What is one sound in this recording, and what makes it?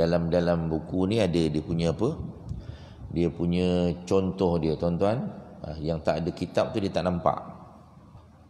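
A middle-aged man chants melodically into a microphone, close and clear.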